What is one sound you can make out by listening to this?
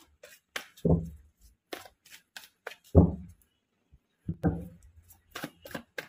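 Playing cards riffle and slap together as they are shuffled by hand.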